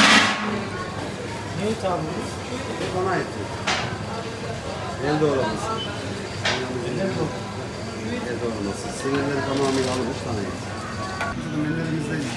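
A ladle scrapes and stirs in a large metal pot.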